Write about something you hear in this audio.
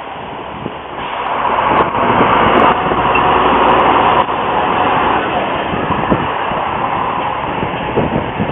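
A diesel railcar rumbles past close by on the tracks.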